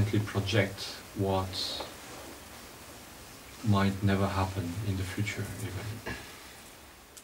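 A man speaks slowly in a deep, calm voice nearby.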